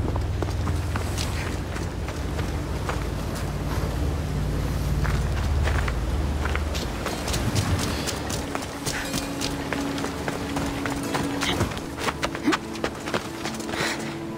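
Footsteps run across stone.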